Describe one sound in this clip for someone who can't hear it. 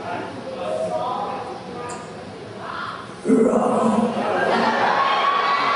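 A woman speaks with animation into a microphone, heard through loudspeakers.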